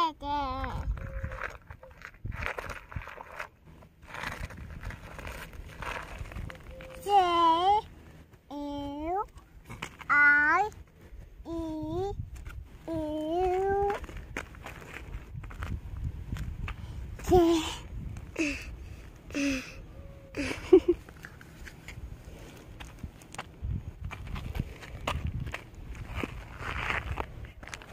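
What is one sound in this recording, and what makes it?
Small stones crunch and rattle as a hand scoops gravel.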